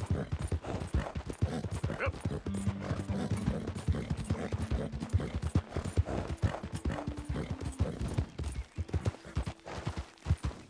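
Horse hooves thud quickly on soft ground at a gallop.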